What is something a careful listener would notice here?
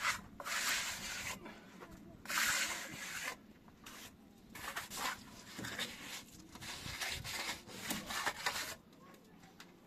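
A plastering float scrapes across wet sand-cement plaster on a wall.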